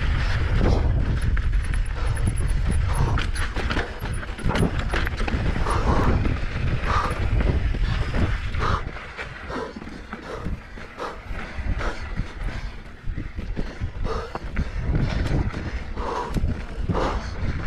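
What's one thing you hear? A bicycle's chain and frame rattle over bumps.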